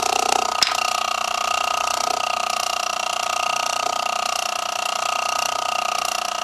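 A small model engine runs with a steady, high-pitched whirring hum.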